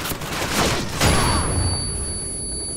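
A stun grenade goes off close by with a loud bang.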